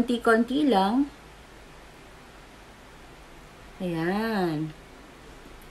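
A young woman speaks in a lilting, sing-song voice close to a microphone, in two short bursts.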